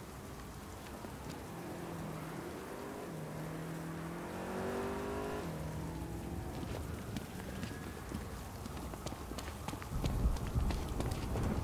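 Heavy footsteps thud on pavement.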